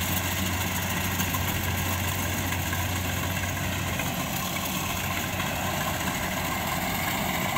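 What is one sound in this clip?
A combine harvester drones in the distance as it cuts rice.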